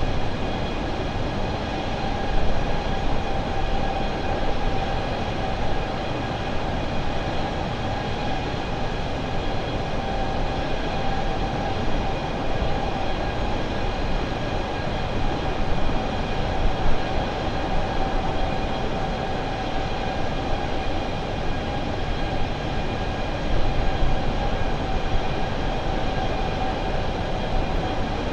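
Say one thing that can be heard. A jet airliner's engines roar steadily with a constant whine.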